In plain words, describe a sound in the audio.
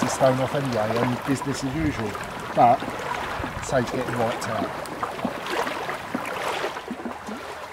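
A middle-aged man talks calmly and close by, outdoors.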